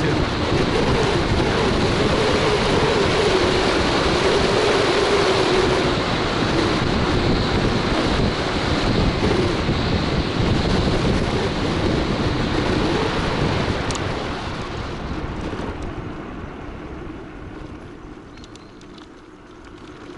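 Wind rushes loudly past a moving scooter and dies down as it slows.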